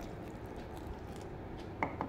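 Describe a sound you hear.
Water trickles into a bowl.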